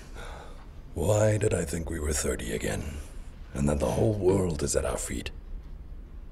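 A middle-aged man speaks softly and warmly, close by.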